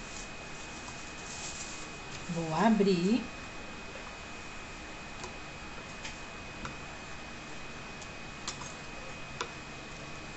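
Paper rustles softly as it is handled close by.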